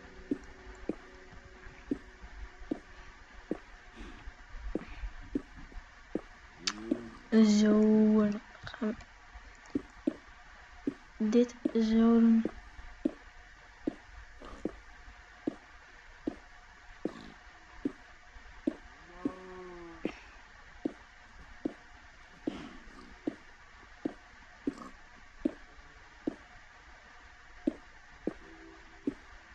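Blocks are placed in a game with regular short thuds.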